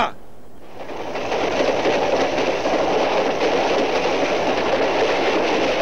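A group of men run and shuffle across pavement.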